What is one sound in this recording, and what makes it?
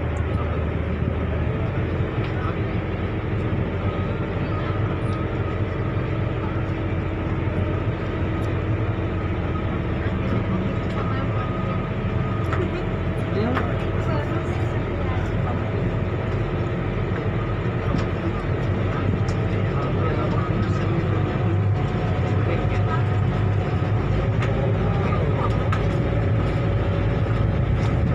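A ferry's engine rumbles steadily.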